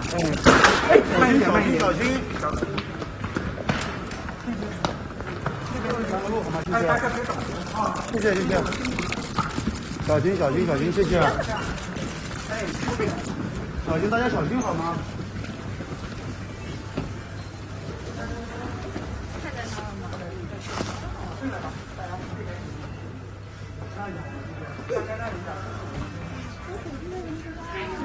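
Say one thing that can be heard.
Young women in a crowd call out and chatter excitedly nearby.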